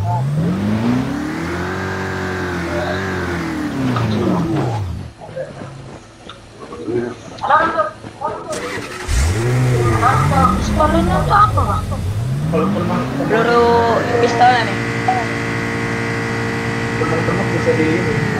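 A car engine revs up and down.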